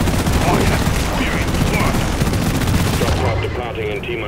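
A heavy gun fires in a rapid, rattling burst.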